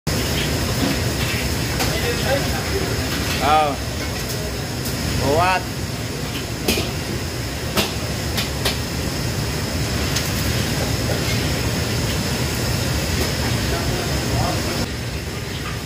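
Metal utensils clank against woks.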